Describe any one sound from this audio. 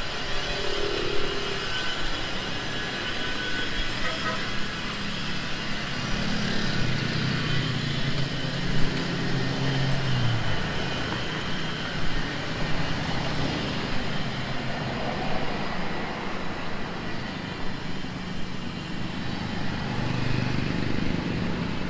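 A motorbike engine passes by.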